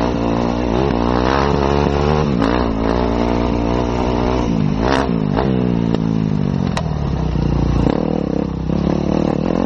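Gravel and stones crunch and knock under tyres.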